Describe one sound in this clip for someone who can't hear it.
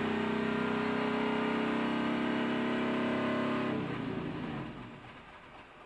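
A race car engine roars loudly.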